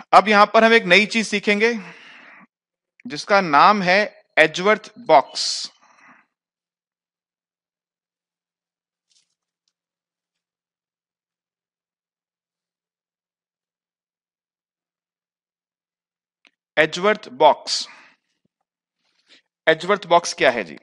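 A man speaks calmly into a close headset microphone, in bursts with long pauses.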